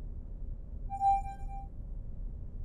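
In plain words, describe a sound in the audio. A soft chime rings out.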